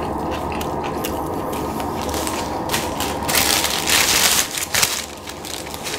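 A young man chews food noisily close to a microphone.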